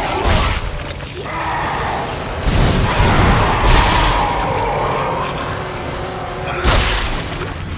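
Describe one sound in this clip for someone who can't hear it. Heavy blows thud and crunch in a struggle.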